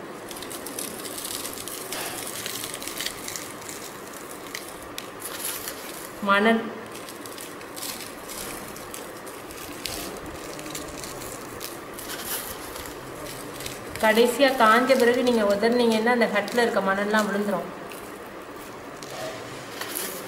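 Fine grains patter softly as fingers sprinkle them onto a surface.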